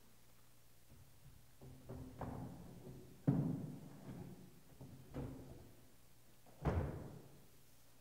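Wooden boards knock and thump.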